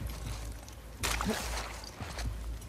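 A body drops and tumbles roughly onto the ground.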